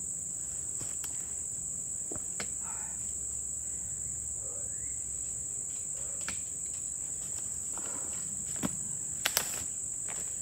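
A man knocks on a wooden log a few times.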